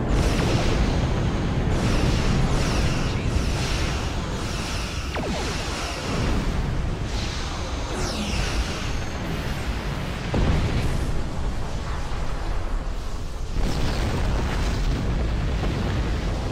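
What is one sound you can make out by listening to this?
Explosions rumble loudly.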